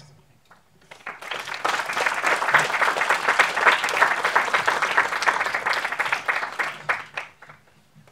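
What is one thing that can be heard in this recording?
An audience applauds in a room.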